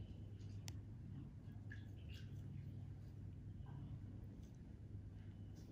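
A needle scrapes lightly against skin.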